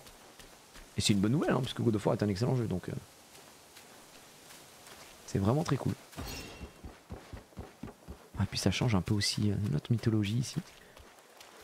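A man speaks calmly and closely into a microphone, in short bursts.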